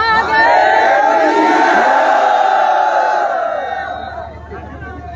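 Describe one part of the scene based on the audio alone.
A man shouts a long drawn-out call through a microphone and loudspeakers.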